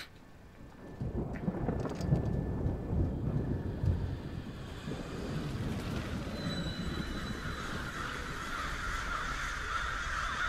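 Strong wind roars and gusts outdoors.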